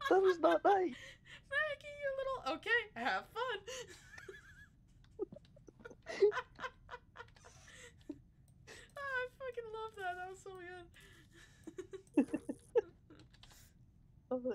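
A young woman talks animatedly close to a microphone.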